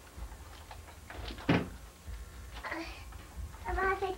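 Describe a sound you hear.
A plastic basket knocks and rattles as a small child pulls it down.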